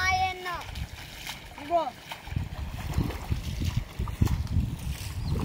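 Water splashes as people wade and drag a net through a shallow stream.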